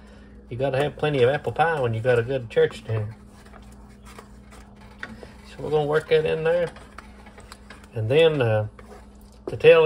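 A wooden spoon stirs a thick bubbling liquid in a metal pot.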